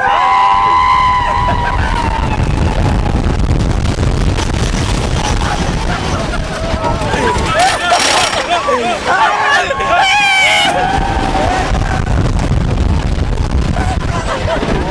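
A roller coaster rattles and clatters along its track.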